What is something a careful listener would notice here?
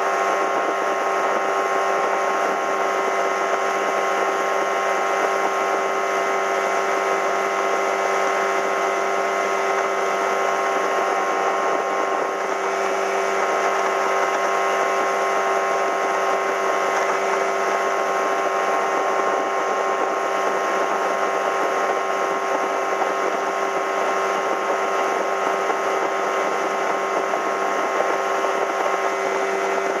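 A boat's outboard motor drones steadily at speed.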